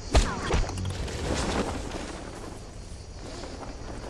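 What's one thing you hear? A parachute snaps open with a loud rush.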